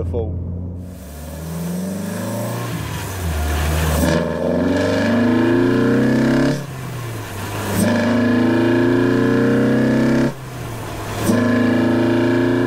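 A car engine revs up hard, changing gears with brief dips.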